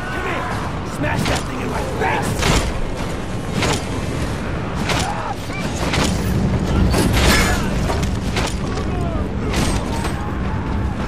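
Blows land with sharp thuds and cracks during a brawl.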